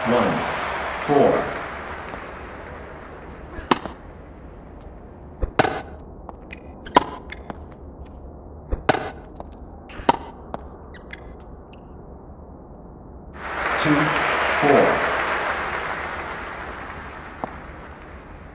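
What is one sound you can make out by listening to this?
A crowd cheers and applauds, then fades.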